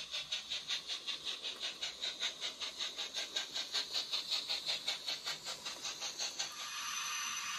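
A model steam locomotive chuffs in a quick, steady rhythm.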